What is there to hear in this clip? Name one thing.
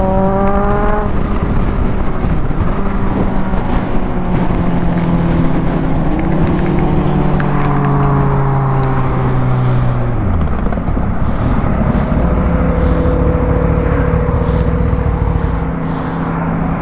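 A motorcycle engine roars at high speed, shifting up and down in pitch.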